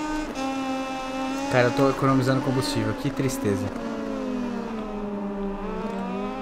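A motorcycle engine roars at high revs, shifting down through the gears with sharp pops, then drops in pitch and picks up again.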